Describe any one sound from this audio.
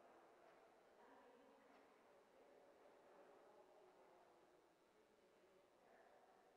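Adults talk quietly far off in a large echoing hall.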